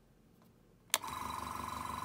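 A switch clicks on.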